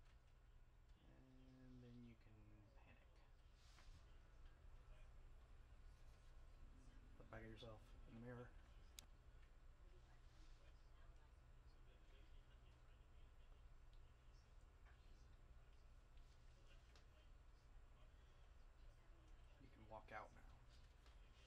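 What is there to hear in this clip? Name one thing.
A man speaks in short, quiet phrases close by.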